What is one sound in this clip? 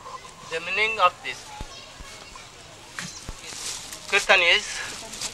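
An elderly man speaks calmly into a microphone close by.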